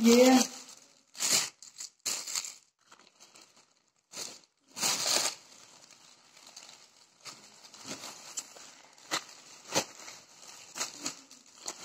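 A thin plastic bag crinkles and rustles as a hand handles it.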